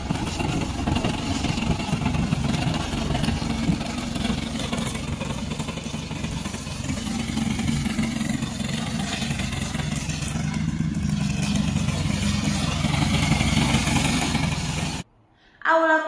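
A lawn mower engine drones steadily as it cuts through dry grass.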